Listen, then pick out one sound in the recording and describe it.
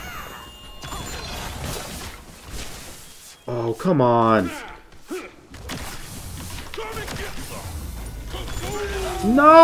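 Magic blasts whoosh and clash.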